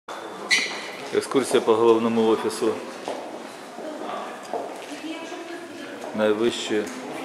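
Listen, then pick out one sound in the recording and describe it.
A crowd of men and women talk and call out nearby.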